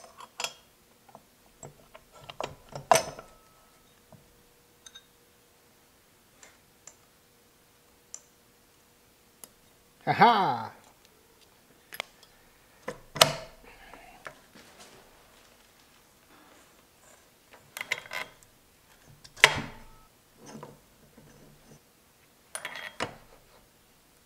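Metal gear parts clink and knock as they are handled.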